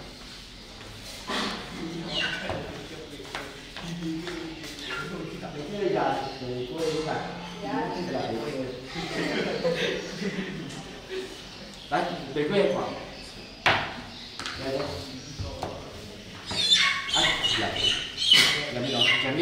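Small objects clink and tap on a table.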